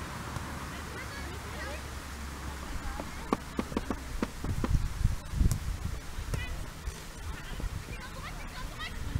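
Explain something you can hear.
Young girls shout to each other across an open field.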